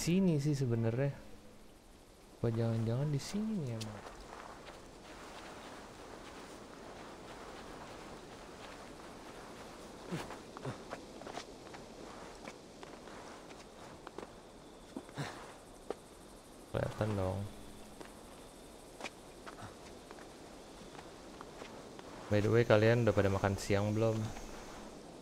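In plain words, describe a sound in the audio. A young man talks casually into a microphone, in short bursts.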